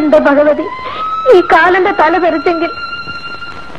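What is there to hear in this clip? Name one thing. A middle-aged woman sobs and cries out in anguish.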